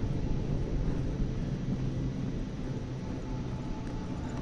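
Footsteps tread slowly on hard ground.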